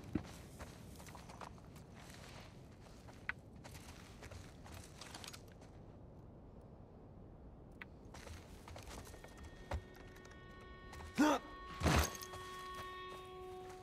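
Footsteps crunch on wooden planks and leaves.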